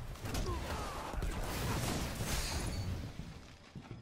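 An explosion booms and crackles with fire.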